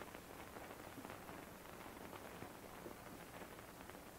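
Paper rustles softly as it is folded.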